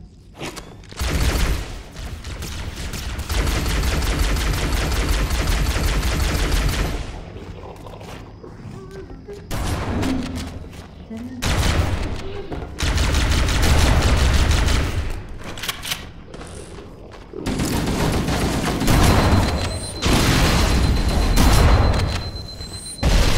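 A plasma gun fires bursts of crackling shots.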